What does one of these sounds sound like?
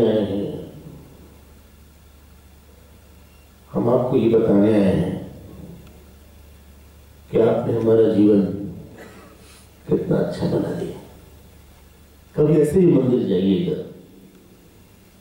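A man speaks calmly into a microphone in short phrases, heard through a loudspeaker.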